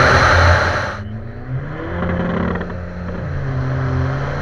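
A diesel engine revs hard and rises in pitch.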